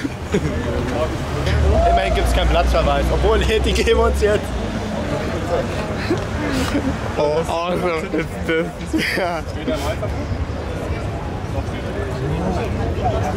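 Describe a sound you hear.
Several men and women talk nearby in a busy street.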